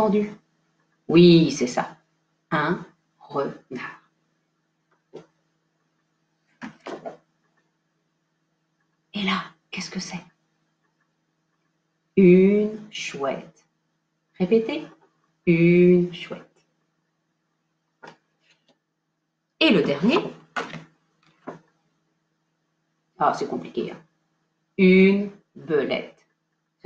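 A woman speaks calmly and expressively close by, in short phrases with pauses.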